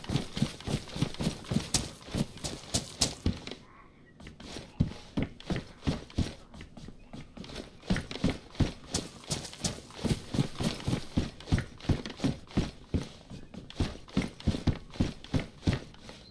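Heavy footsteps thud quickly on hollow flooring and grass.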